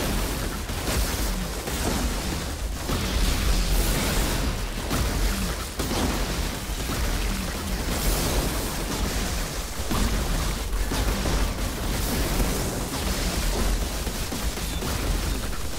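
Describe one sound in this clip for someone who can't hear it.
Electric blasts crackle and zap.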